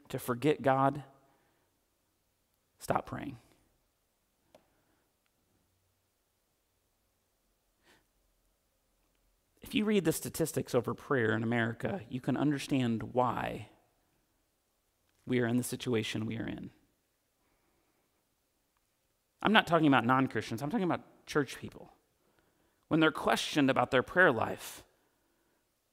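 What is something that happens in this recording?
A man speaks with emphasis through a microphone, pausing between phrases, in an echoing hall.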